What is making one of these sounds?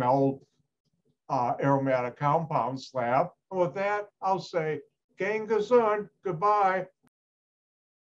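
An elderly man talks cheerfully into a microphone over an online call.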